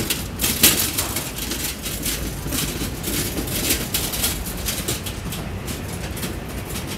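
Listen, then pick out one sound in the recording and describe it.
Small wheels rattle over a hard pavement as a cart is pulled along.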